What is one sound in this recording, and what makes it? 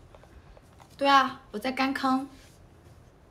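A young woman speaks animatedly close to a microphone.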